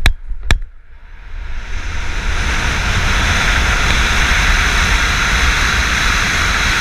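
Wind roars loudly and steadily past the microphone.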